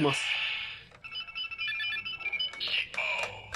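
A toy transformation belt plays electronic chimes through a small speaker.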